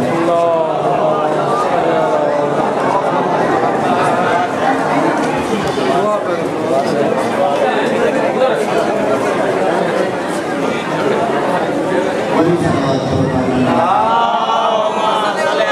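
A crowd of men chants along in unison.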